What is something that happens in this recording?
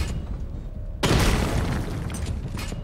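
A loud blast bursts and rumbles away.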